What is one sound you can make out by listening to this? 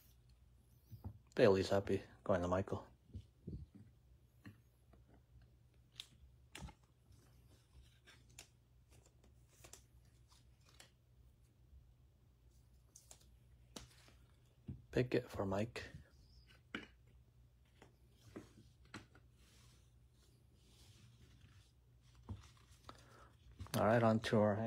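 Plastic card cases click and tap as hands handle them.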